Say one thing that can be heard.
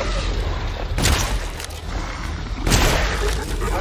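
A gun fires loud shots.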